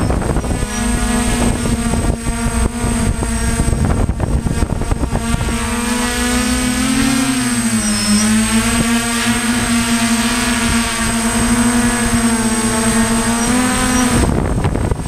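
Small drone propellers buzz steadily close by, their pitch wavering up and down.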